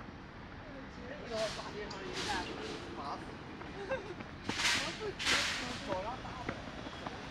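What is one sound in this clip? Nearby passers-by, adults, talk casually outdoors.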